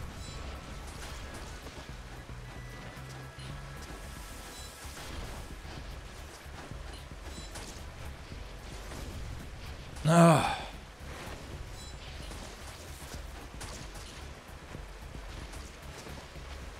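Game sword slashes and magic blasts crackle.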